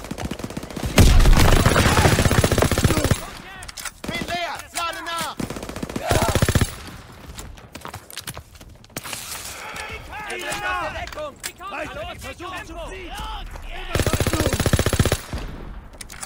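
A submachine gun fires rapid bursts nearby.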